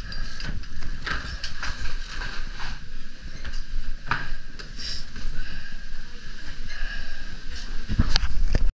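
Ski poles click and scrape against the belt.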